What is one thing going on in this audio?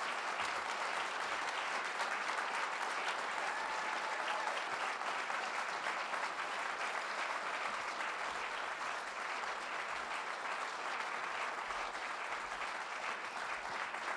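A large audience applauds steadily in a large room.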